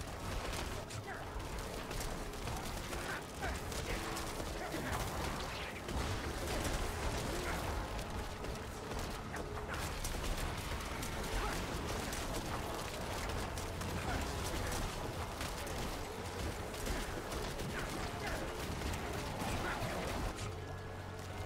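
Game spell blasts and hits crackle and burst rapidly.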